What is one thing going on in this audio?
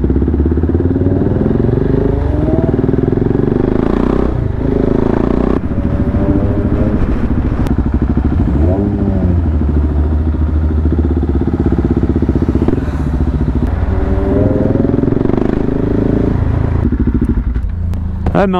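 A motorcycle engine hums and revs as it rides along a street.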